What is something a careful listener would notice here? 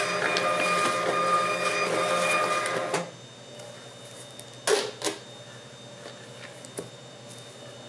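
Paper rustles and crinkles in someone's hands.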